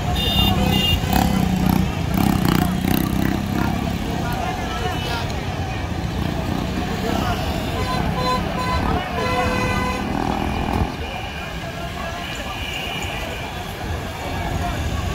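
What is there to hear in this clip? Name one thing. A busy crowd chatters outdoors.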